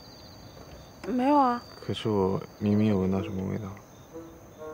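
A young man speaks quietly up close.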